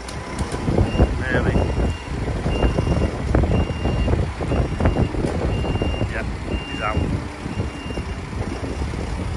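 A vehicle's reversing alarm beeps steadily.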